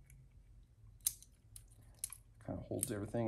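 A hand tool clicks and taps against metal.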